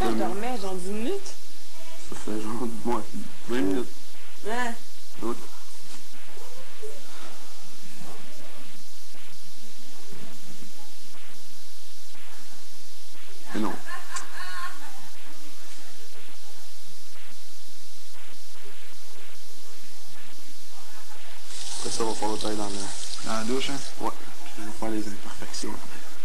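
A man and a woman talk casually nearby.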